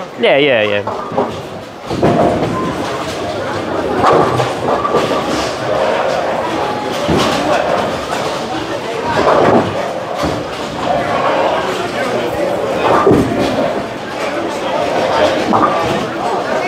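Bowling balls rumble down wooden lanes in a large echoing hall.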